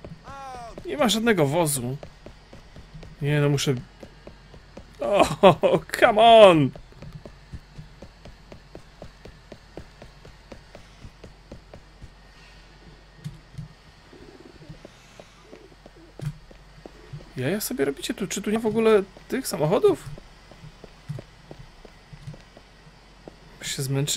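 Quick footsteps run on pavement.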